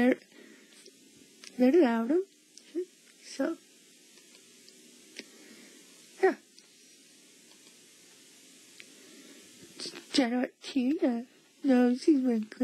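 A young girl speaks with excitement, close by.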